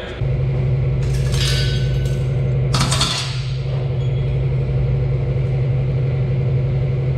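Machinery hums steadily and loudly.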